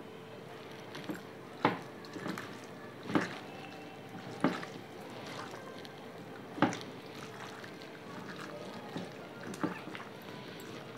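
Hands squelch as they mix wet chunks of meat in a bowl.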